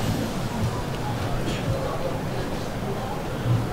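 Men talk casually nearby outdoors.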